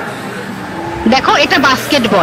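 A woman talks loudly nearby.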